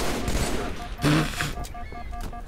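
A sniper rifle fires with a sharp, loud crack.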